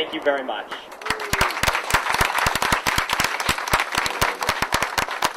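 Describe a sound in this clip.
A crowd claps and applauds in a large room.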